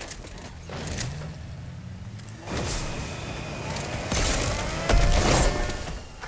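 A car engine revs and hums as a vehicle drives.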